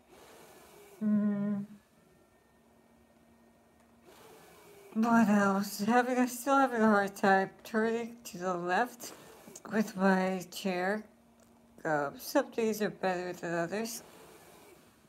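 A middle-aged woman speaks softly and slowly, close by.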